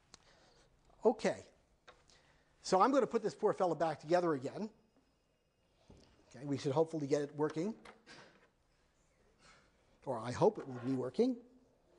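A man lectures through a microphone, speaking calmly with pauses.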